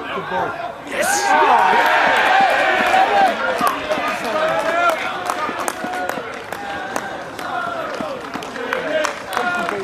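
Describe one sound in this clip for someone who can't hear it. Young men shout and cheer outdoors after a goal.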